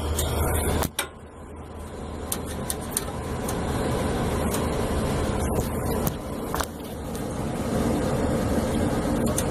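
A rooftop air-conditioning unit hums and rumbles as it runs.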